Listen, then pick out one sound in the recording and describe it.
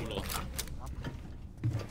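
Gunshots crack and splinter through a wooden wall.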